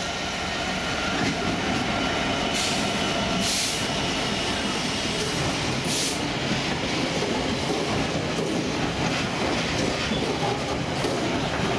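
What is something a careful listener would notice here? Freight wagons rumble and clatter loudly over the rails close by.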